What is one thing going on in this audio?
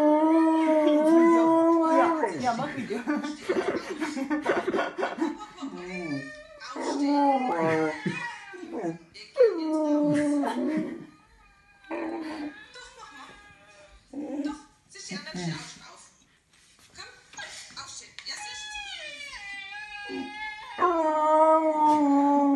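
A dog howls loudly nearby, with long, wavering cries.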